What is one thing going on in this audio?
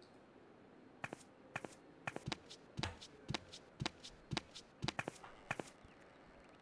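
Footsteps knock on wooden stairs.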